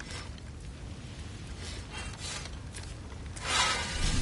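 A soft interface chime sounds.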